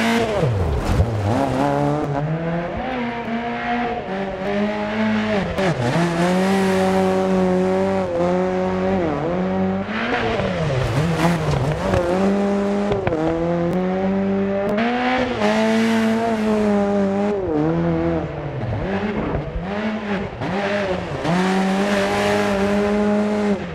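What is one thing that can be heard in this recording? Tyres crunch and spray gravel on a dirt road.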